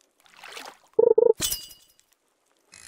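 A game character strikes something with a sharp, punchy hit sound.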